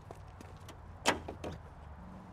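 A car door thuds.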